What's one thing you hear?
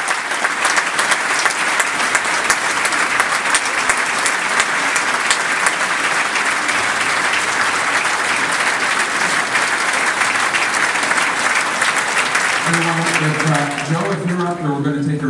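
A large crowd applauds and cheers loudly in a big echoing hall.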